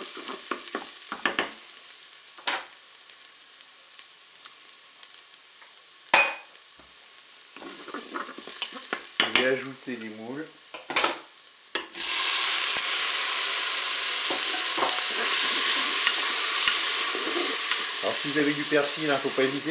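A wooden spoon scrapes and stirs in a metal pot.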